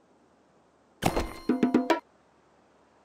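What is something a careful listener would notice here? A short, bright game jingle plays with a few quick chiming notes.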